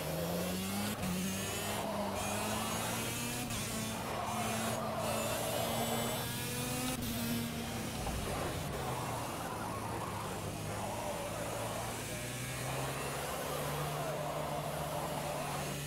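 A small kart engine buzzes and revs up and down throughout.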